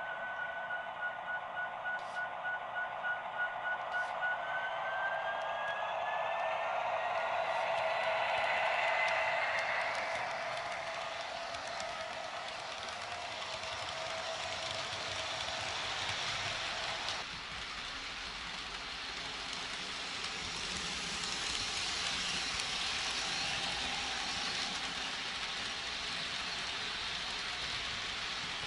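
A model train rumbles and clatters along its track.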